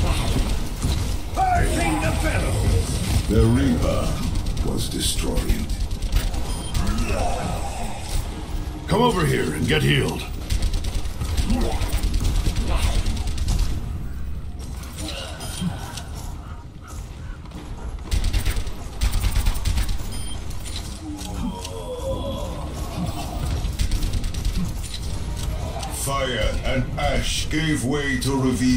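Rapid gunfire crackles from a game weapon.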